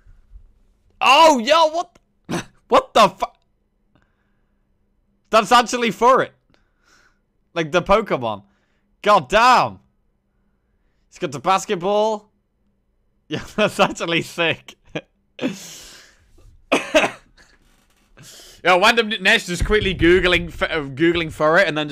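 A young man talks with animation into a close microphone, laughing at times.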